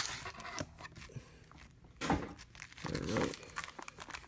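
Stacked card packs tap and shuffle against each other.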